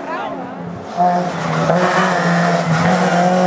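A small rally hatchback revs hard as it approaches.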